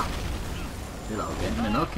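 Burning debris roars as it falls.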